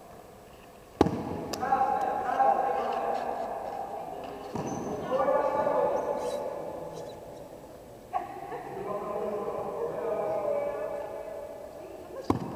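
A bat strikes a ball with a sharp crack that echoes around a large hall.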